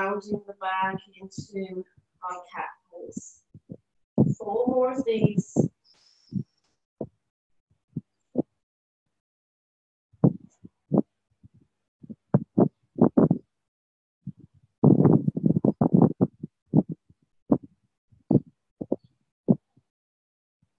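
A woman speaks calmly, giving slow instructions close to a microphone.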